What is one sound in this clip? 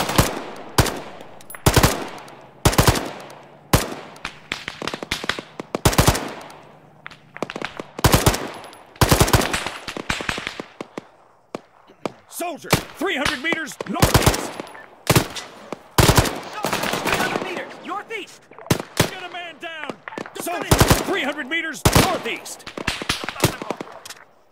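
Gunshots crack in sharp bursts outdoors, echoing across open ground.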